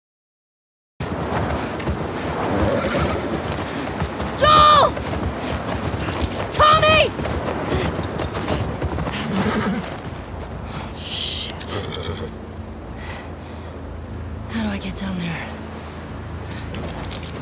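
Wind blows steadily outdoors in a snowstorm.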